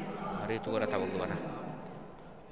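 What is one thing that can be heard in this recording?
A man talks casually and laughs close by.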